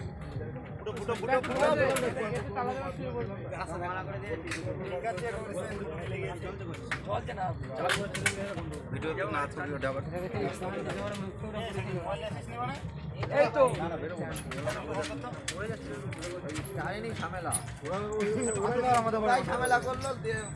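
Several men talk and call out to each other outdoors at night.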